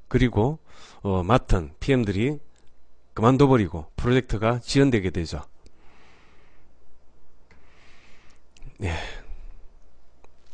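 A middle-aged man speaks with animation into a microphone.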